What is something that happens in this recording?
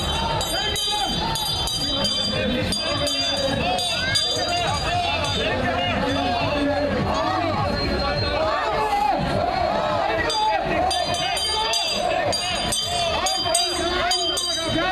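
Children shout and cheer in high voices.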